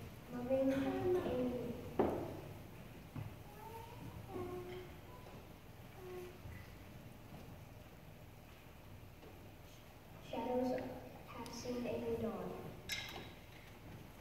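Children speak lines one after another in a hall with a slight echo.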